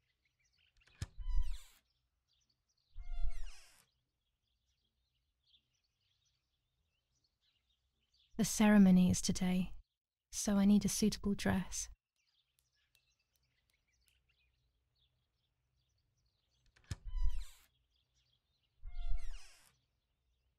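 Wooden wardrobe doors creak open.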